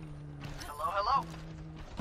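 A futuristic weapon fires a buzzing energy beam.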